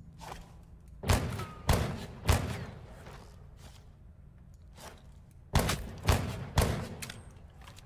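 Gunshots ring out in short bursts with a ringing tail.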